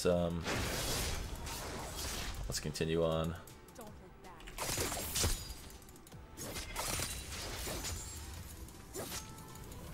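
Game sound effects clash and zap during a fight.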